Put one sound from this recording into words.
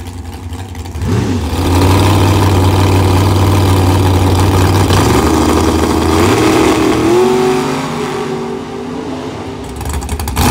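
A drag racing car's engine roars up loud and revs higher as the car launches and speeds away.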